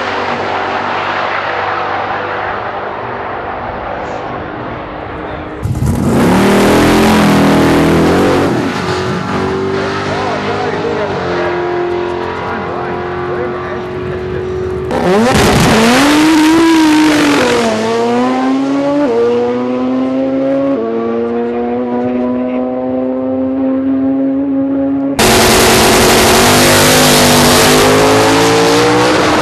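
A loud race car engine roars and climbs in pitch as the car speeds away.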